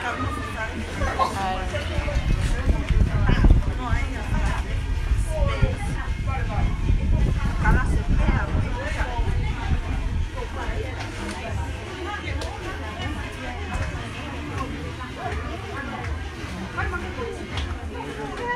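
Several women talk and chatter in a room nearby.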